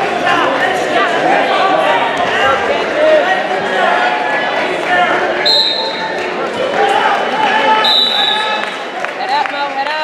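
A man shouts encouragement loudly.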